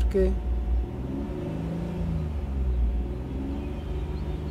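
A car engine revs up and falls back twice.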